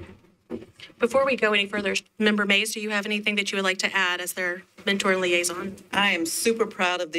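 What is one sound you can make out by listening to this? A woman speaks into a microphone with animation.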